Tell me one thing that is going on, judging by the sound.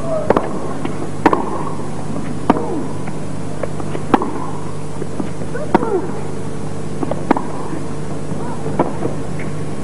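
Rackets strike a tennis ball back and forth in a steady rally.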